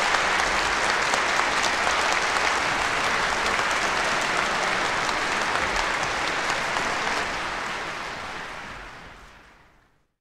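A vinyl record hisses and crackles softly under the stylus, then fades away.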